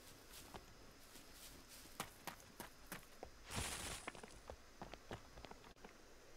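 Footsteps clatter on roof tiles.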